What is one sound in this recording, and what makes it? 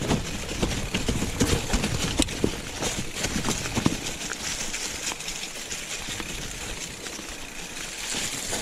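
Bicycle tyres roll and crunch over dry leaves and dirt.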